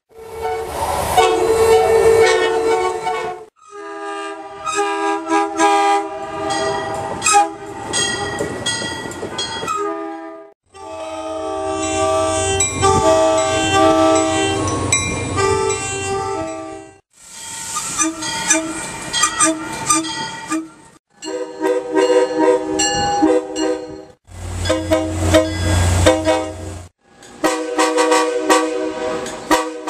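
A train horn blares loudly in long, repeated blasts.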